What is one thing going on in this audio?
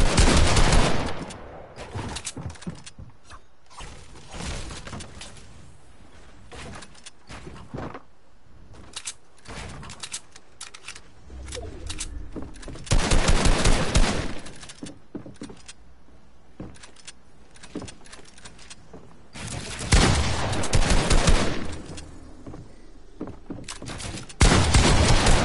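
Wooden walls clatter as they are built up quickly.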